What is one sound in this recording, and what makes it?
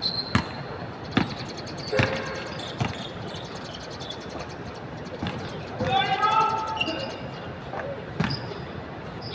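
A basketball bounces on a hard outdoor court with sharp thuds.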